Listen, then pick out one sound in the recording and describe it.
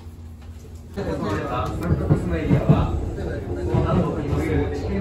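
A hand rubs and squeaks along a foam rail.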